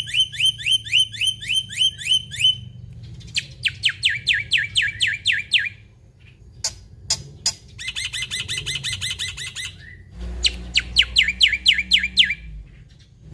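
A caged bird sings in rapid, repeated chirps and rising whistles.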